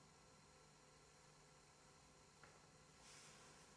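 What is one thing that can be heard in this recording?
Cards rustle softly in a man's hands.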